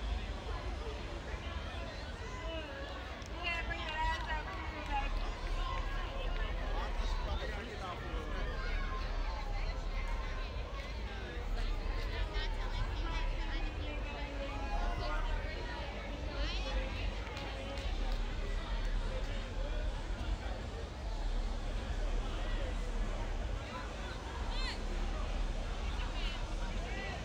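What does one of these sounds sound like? A crowd of young people chatter and call out outdoors.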